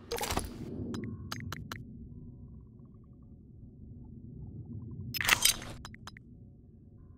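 Soft menu clicks tick as items are selected.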